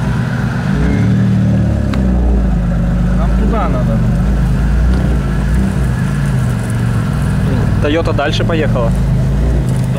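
A vehicle engine revs.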